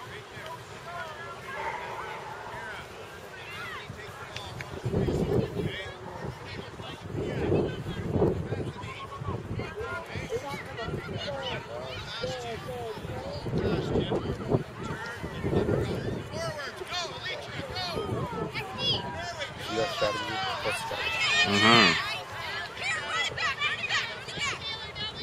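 Young girls chatter and call out nearby outdoors.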